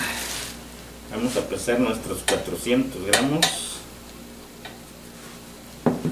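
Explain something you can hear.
Flour rustles as it is scooped and poured.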